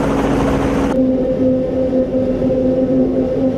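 A truck engine hums as it drives along a road.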